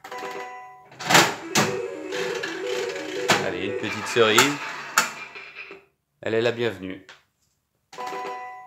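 A slot machine plays a beeping electronic jingle.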